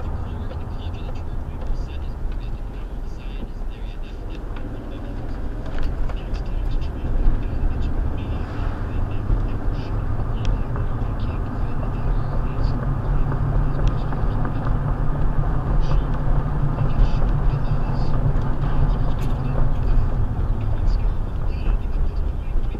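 A car engine hums steadily and rumbles inside the car, slowing down and then picking up speed.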